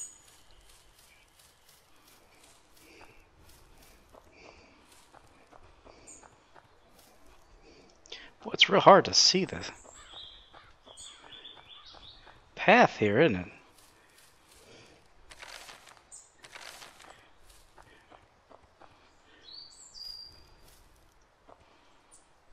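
Footsteps rustle softly through grass and undergrowth.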